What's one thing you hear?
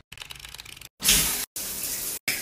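Water sprays steadily from a shower head.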